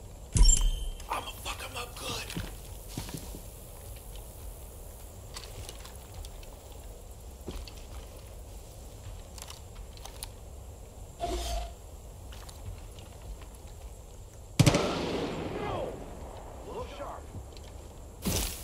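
Footsteps crunch over dry ground and undergrowth.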